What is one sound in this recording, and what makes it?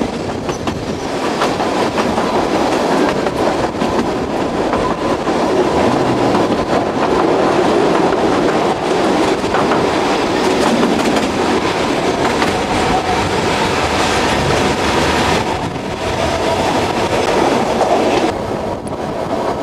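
Wind rushes past close by, as if out of an open window.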